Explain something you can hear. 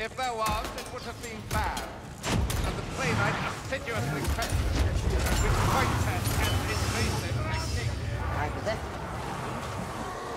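Energy beams crackle and hum.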